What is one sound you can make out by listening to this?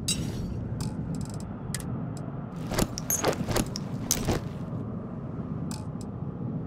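Short electronic clicks and chimes sound now and then.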